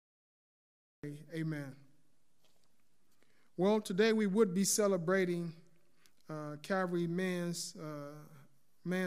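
A man reads out calmly and clearly through a microphone.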